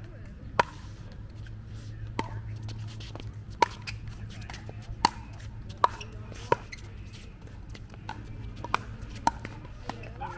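Paddles hit a plastic ball with sharp pops, back and forth.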